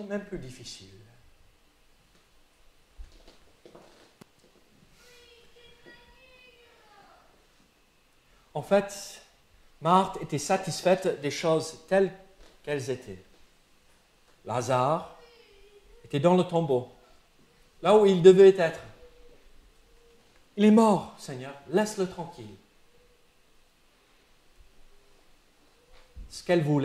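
A man speaks slowly and earnestly into a microphone, with long pauses, in an echoing room.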